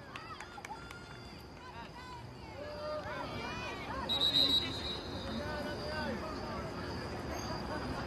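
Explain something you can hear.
Young women call out to each other in the distance outdoors.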